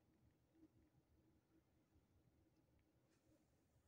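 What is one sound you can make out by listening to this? A finger taps a touchscreen.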